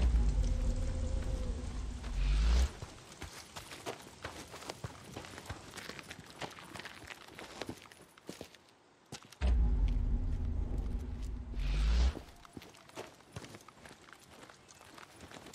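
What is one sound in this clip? Footsteps crunch quickly on dirt and gravel.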